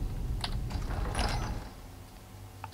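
A heavy stone door grinds open.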